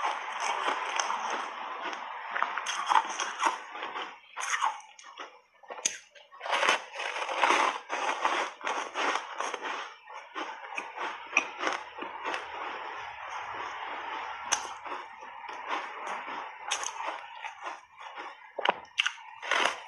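A young woman bites and chews a crunchy, crumbly block up close, with wet crunching and smacking sounds.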